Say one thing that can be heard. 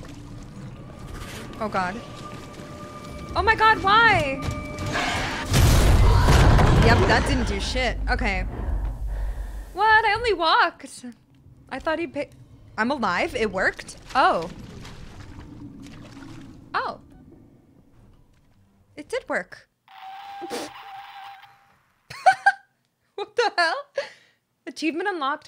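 A young woman talks into a microphone with animation, close by.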